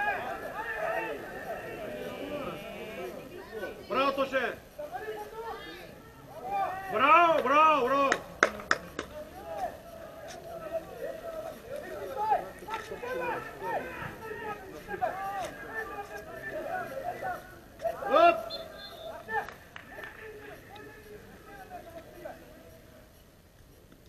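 Several young men chat and call out close by, outdoors.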